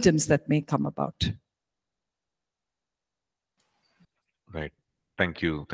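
A middle-aged woman speaks calmly into a close microphone, with pauses.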